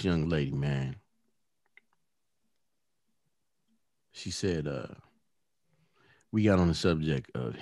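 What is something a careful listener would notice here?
A man speaks calmly and close into a microphone, in short bursts with pauses.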